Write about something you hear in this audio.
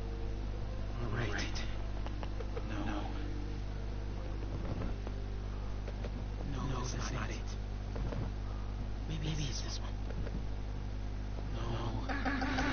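A cardboard box scrapes and thumps as it is lifted and set down.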